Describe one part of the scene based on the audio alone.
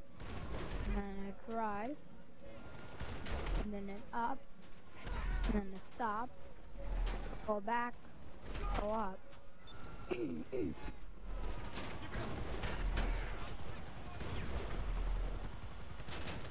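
A tank cannon fires with deep booms.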